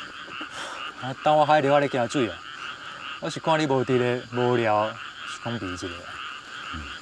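Another young man answers calmly nearby.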